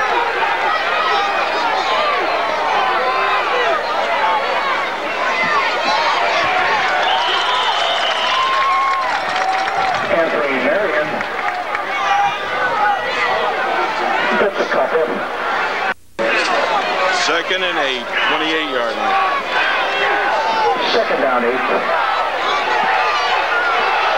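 A crowd of spectators talks and shouts close by.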